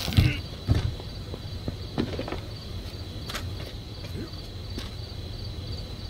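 A bow string creaks as it is drawn back.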